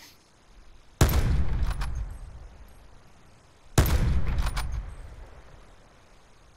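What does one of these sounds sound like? A sniper rifle fires two shots, each with a rolling echo.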